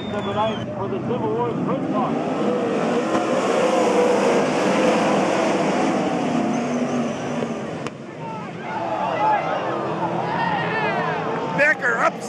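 Racing cars roar loudly around a dirt track, engines revving up and down.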